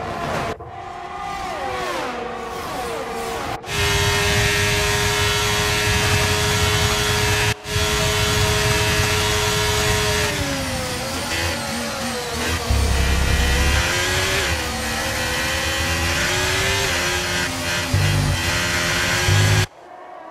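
A racing car engine screams at high revs, shifting pitch as it changes gear.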